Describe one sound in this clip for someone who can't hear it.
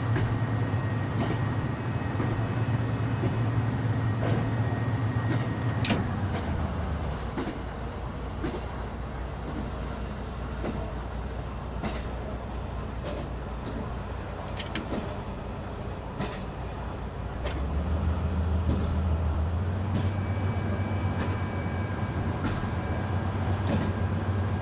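A train rumbles along rails with a steady low engine hum.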